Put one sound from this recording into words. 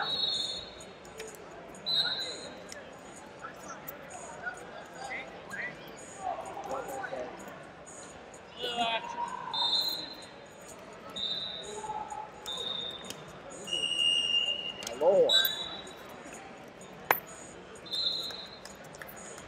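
Wrestling shoes squeak sharply on a mat.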